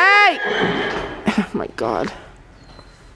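A horse squeals loudly.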